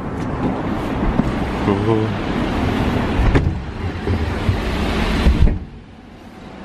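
Street noise rumbles loudly through an open door, then drops away suddenly.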